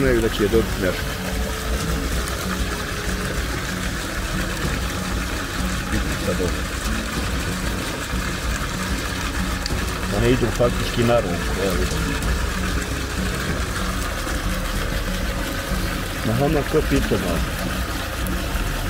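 Water laps gently against a stone edge.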